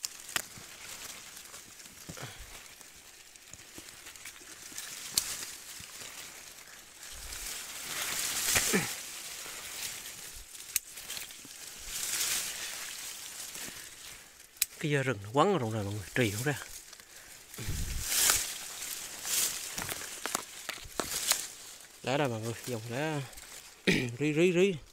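Leaves of a shrub rustle as branches are pushed aside.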